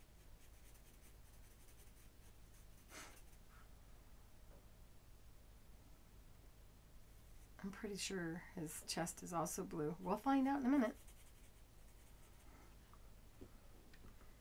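A felt-tip pen scratches softly across a plastic sheet.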